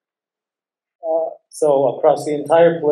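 A young man speaks through a face mask over an online call.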